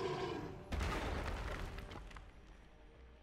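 A magical blast bursts with a loud whoosh and fades.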